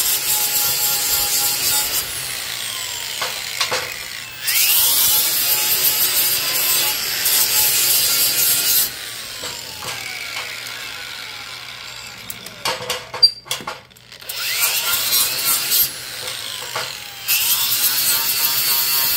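An angle grinder grinds metal with a harsh high screech, in several bursts.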